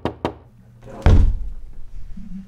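A door swings open with a thud.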